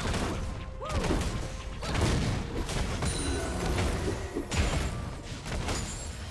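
Game battle effects clash, crackle and boom in quick bursts.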